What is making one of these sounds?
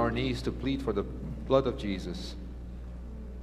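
An older man speaks into a microphone in a large echoing hall.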